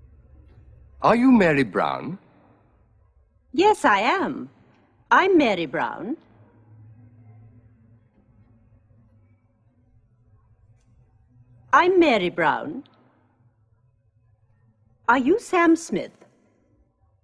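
A woman answers brightly and cheerfully, close by.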